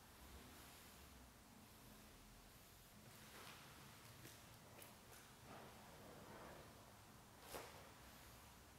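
A stiff cotton uniform rustles as a man bows.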